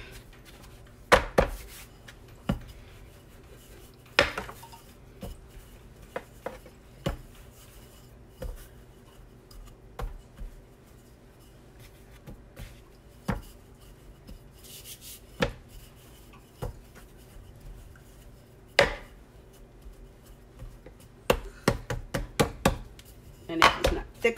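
A wooden rolling pin knocks and rolls over dough on a wooden board.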